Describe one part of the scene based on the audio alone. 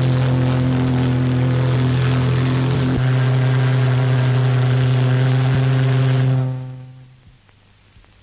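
A ship's horn blasts loudly and steadily, then fades away.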